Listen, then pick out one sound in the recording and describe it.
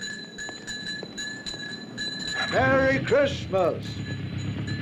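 A young man calls out loudly nearby.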